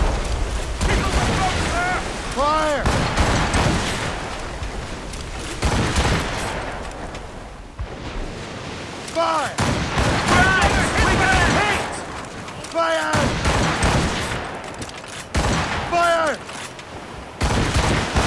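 Muskets crack in quick shots.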